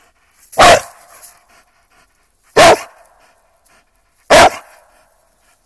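A dog barks loudly up close.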